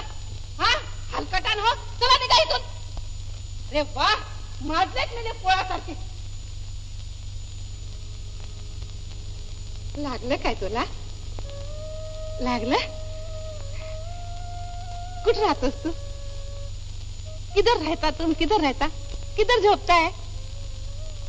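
A woman speaks with animation, close by.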